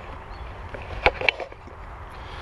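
A wooden hive frame knocks against a wooden hive box.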